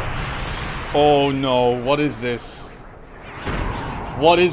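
A young man speaks calmly into a close microphone.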